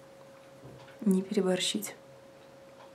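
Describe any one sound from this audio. A young woman speaks briefly and calmly, close by.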